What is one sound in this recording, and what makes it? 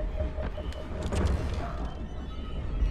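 Wooden cabinet doors creak open.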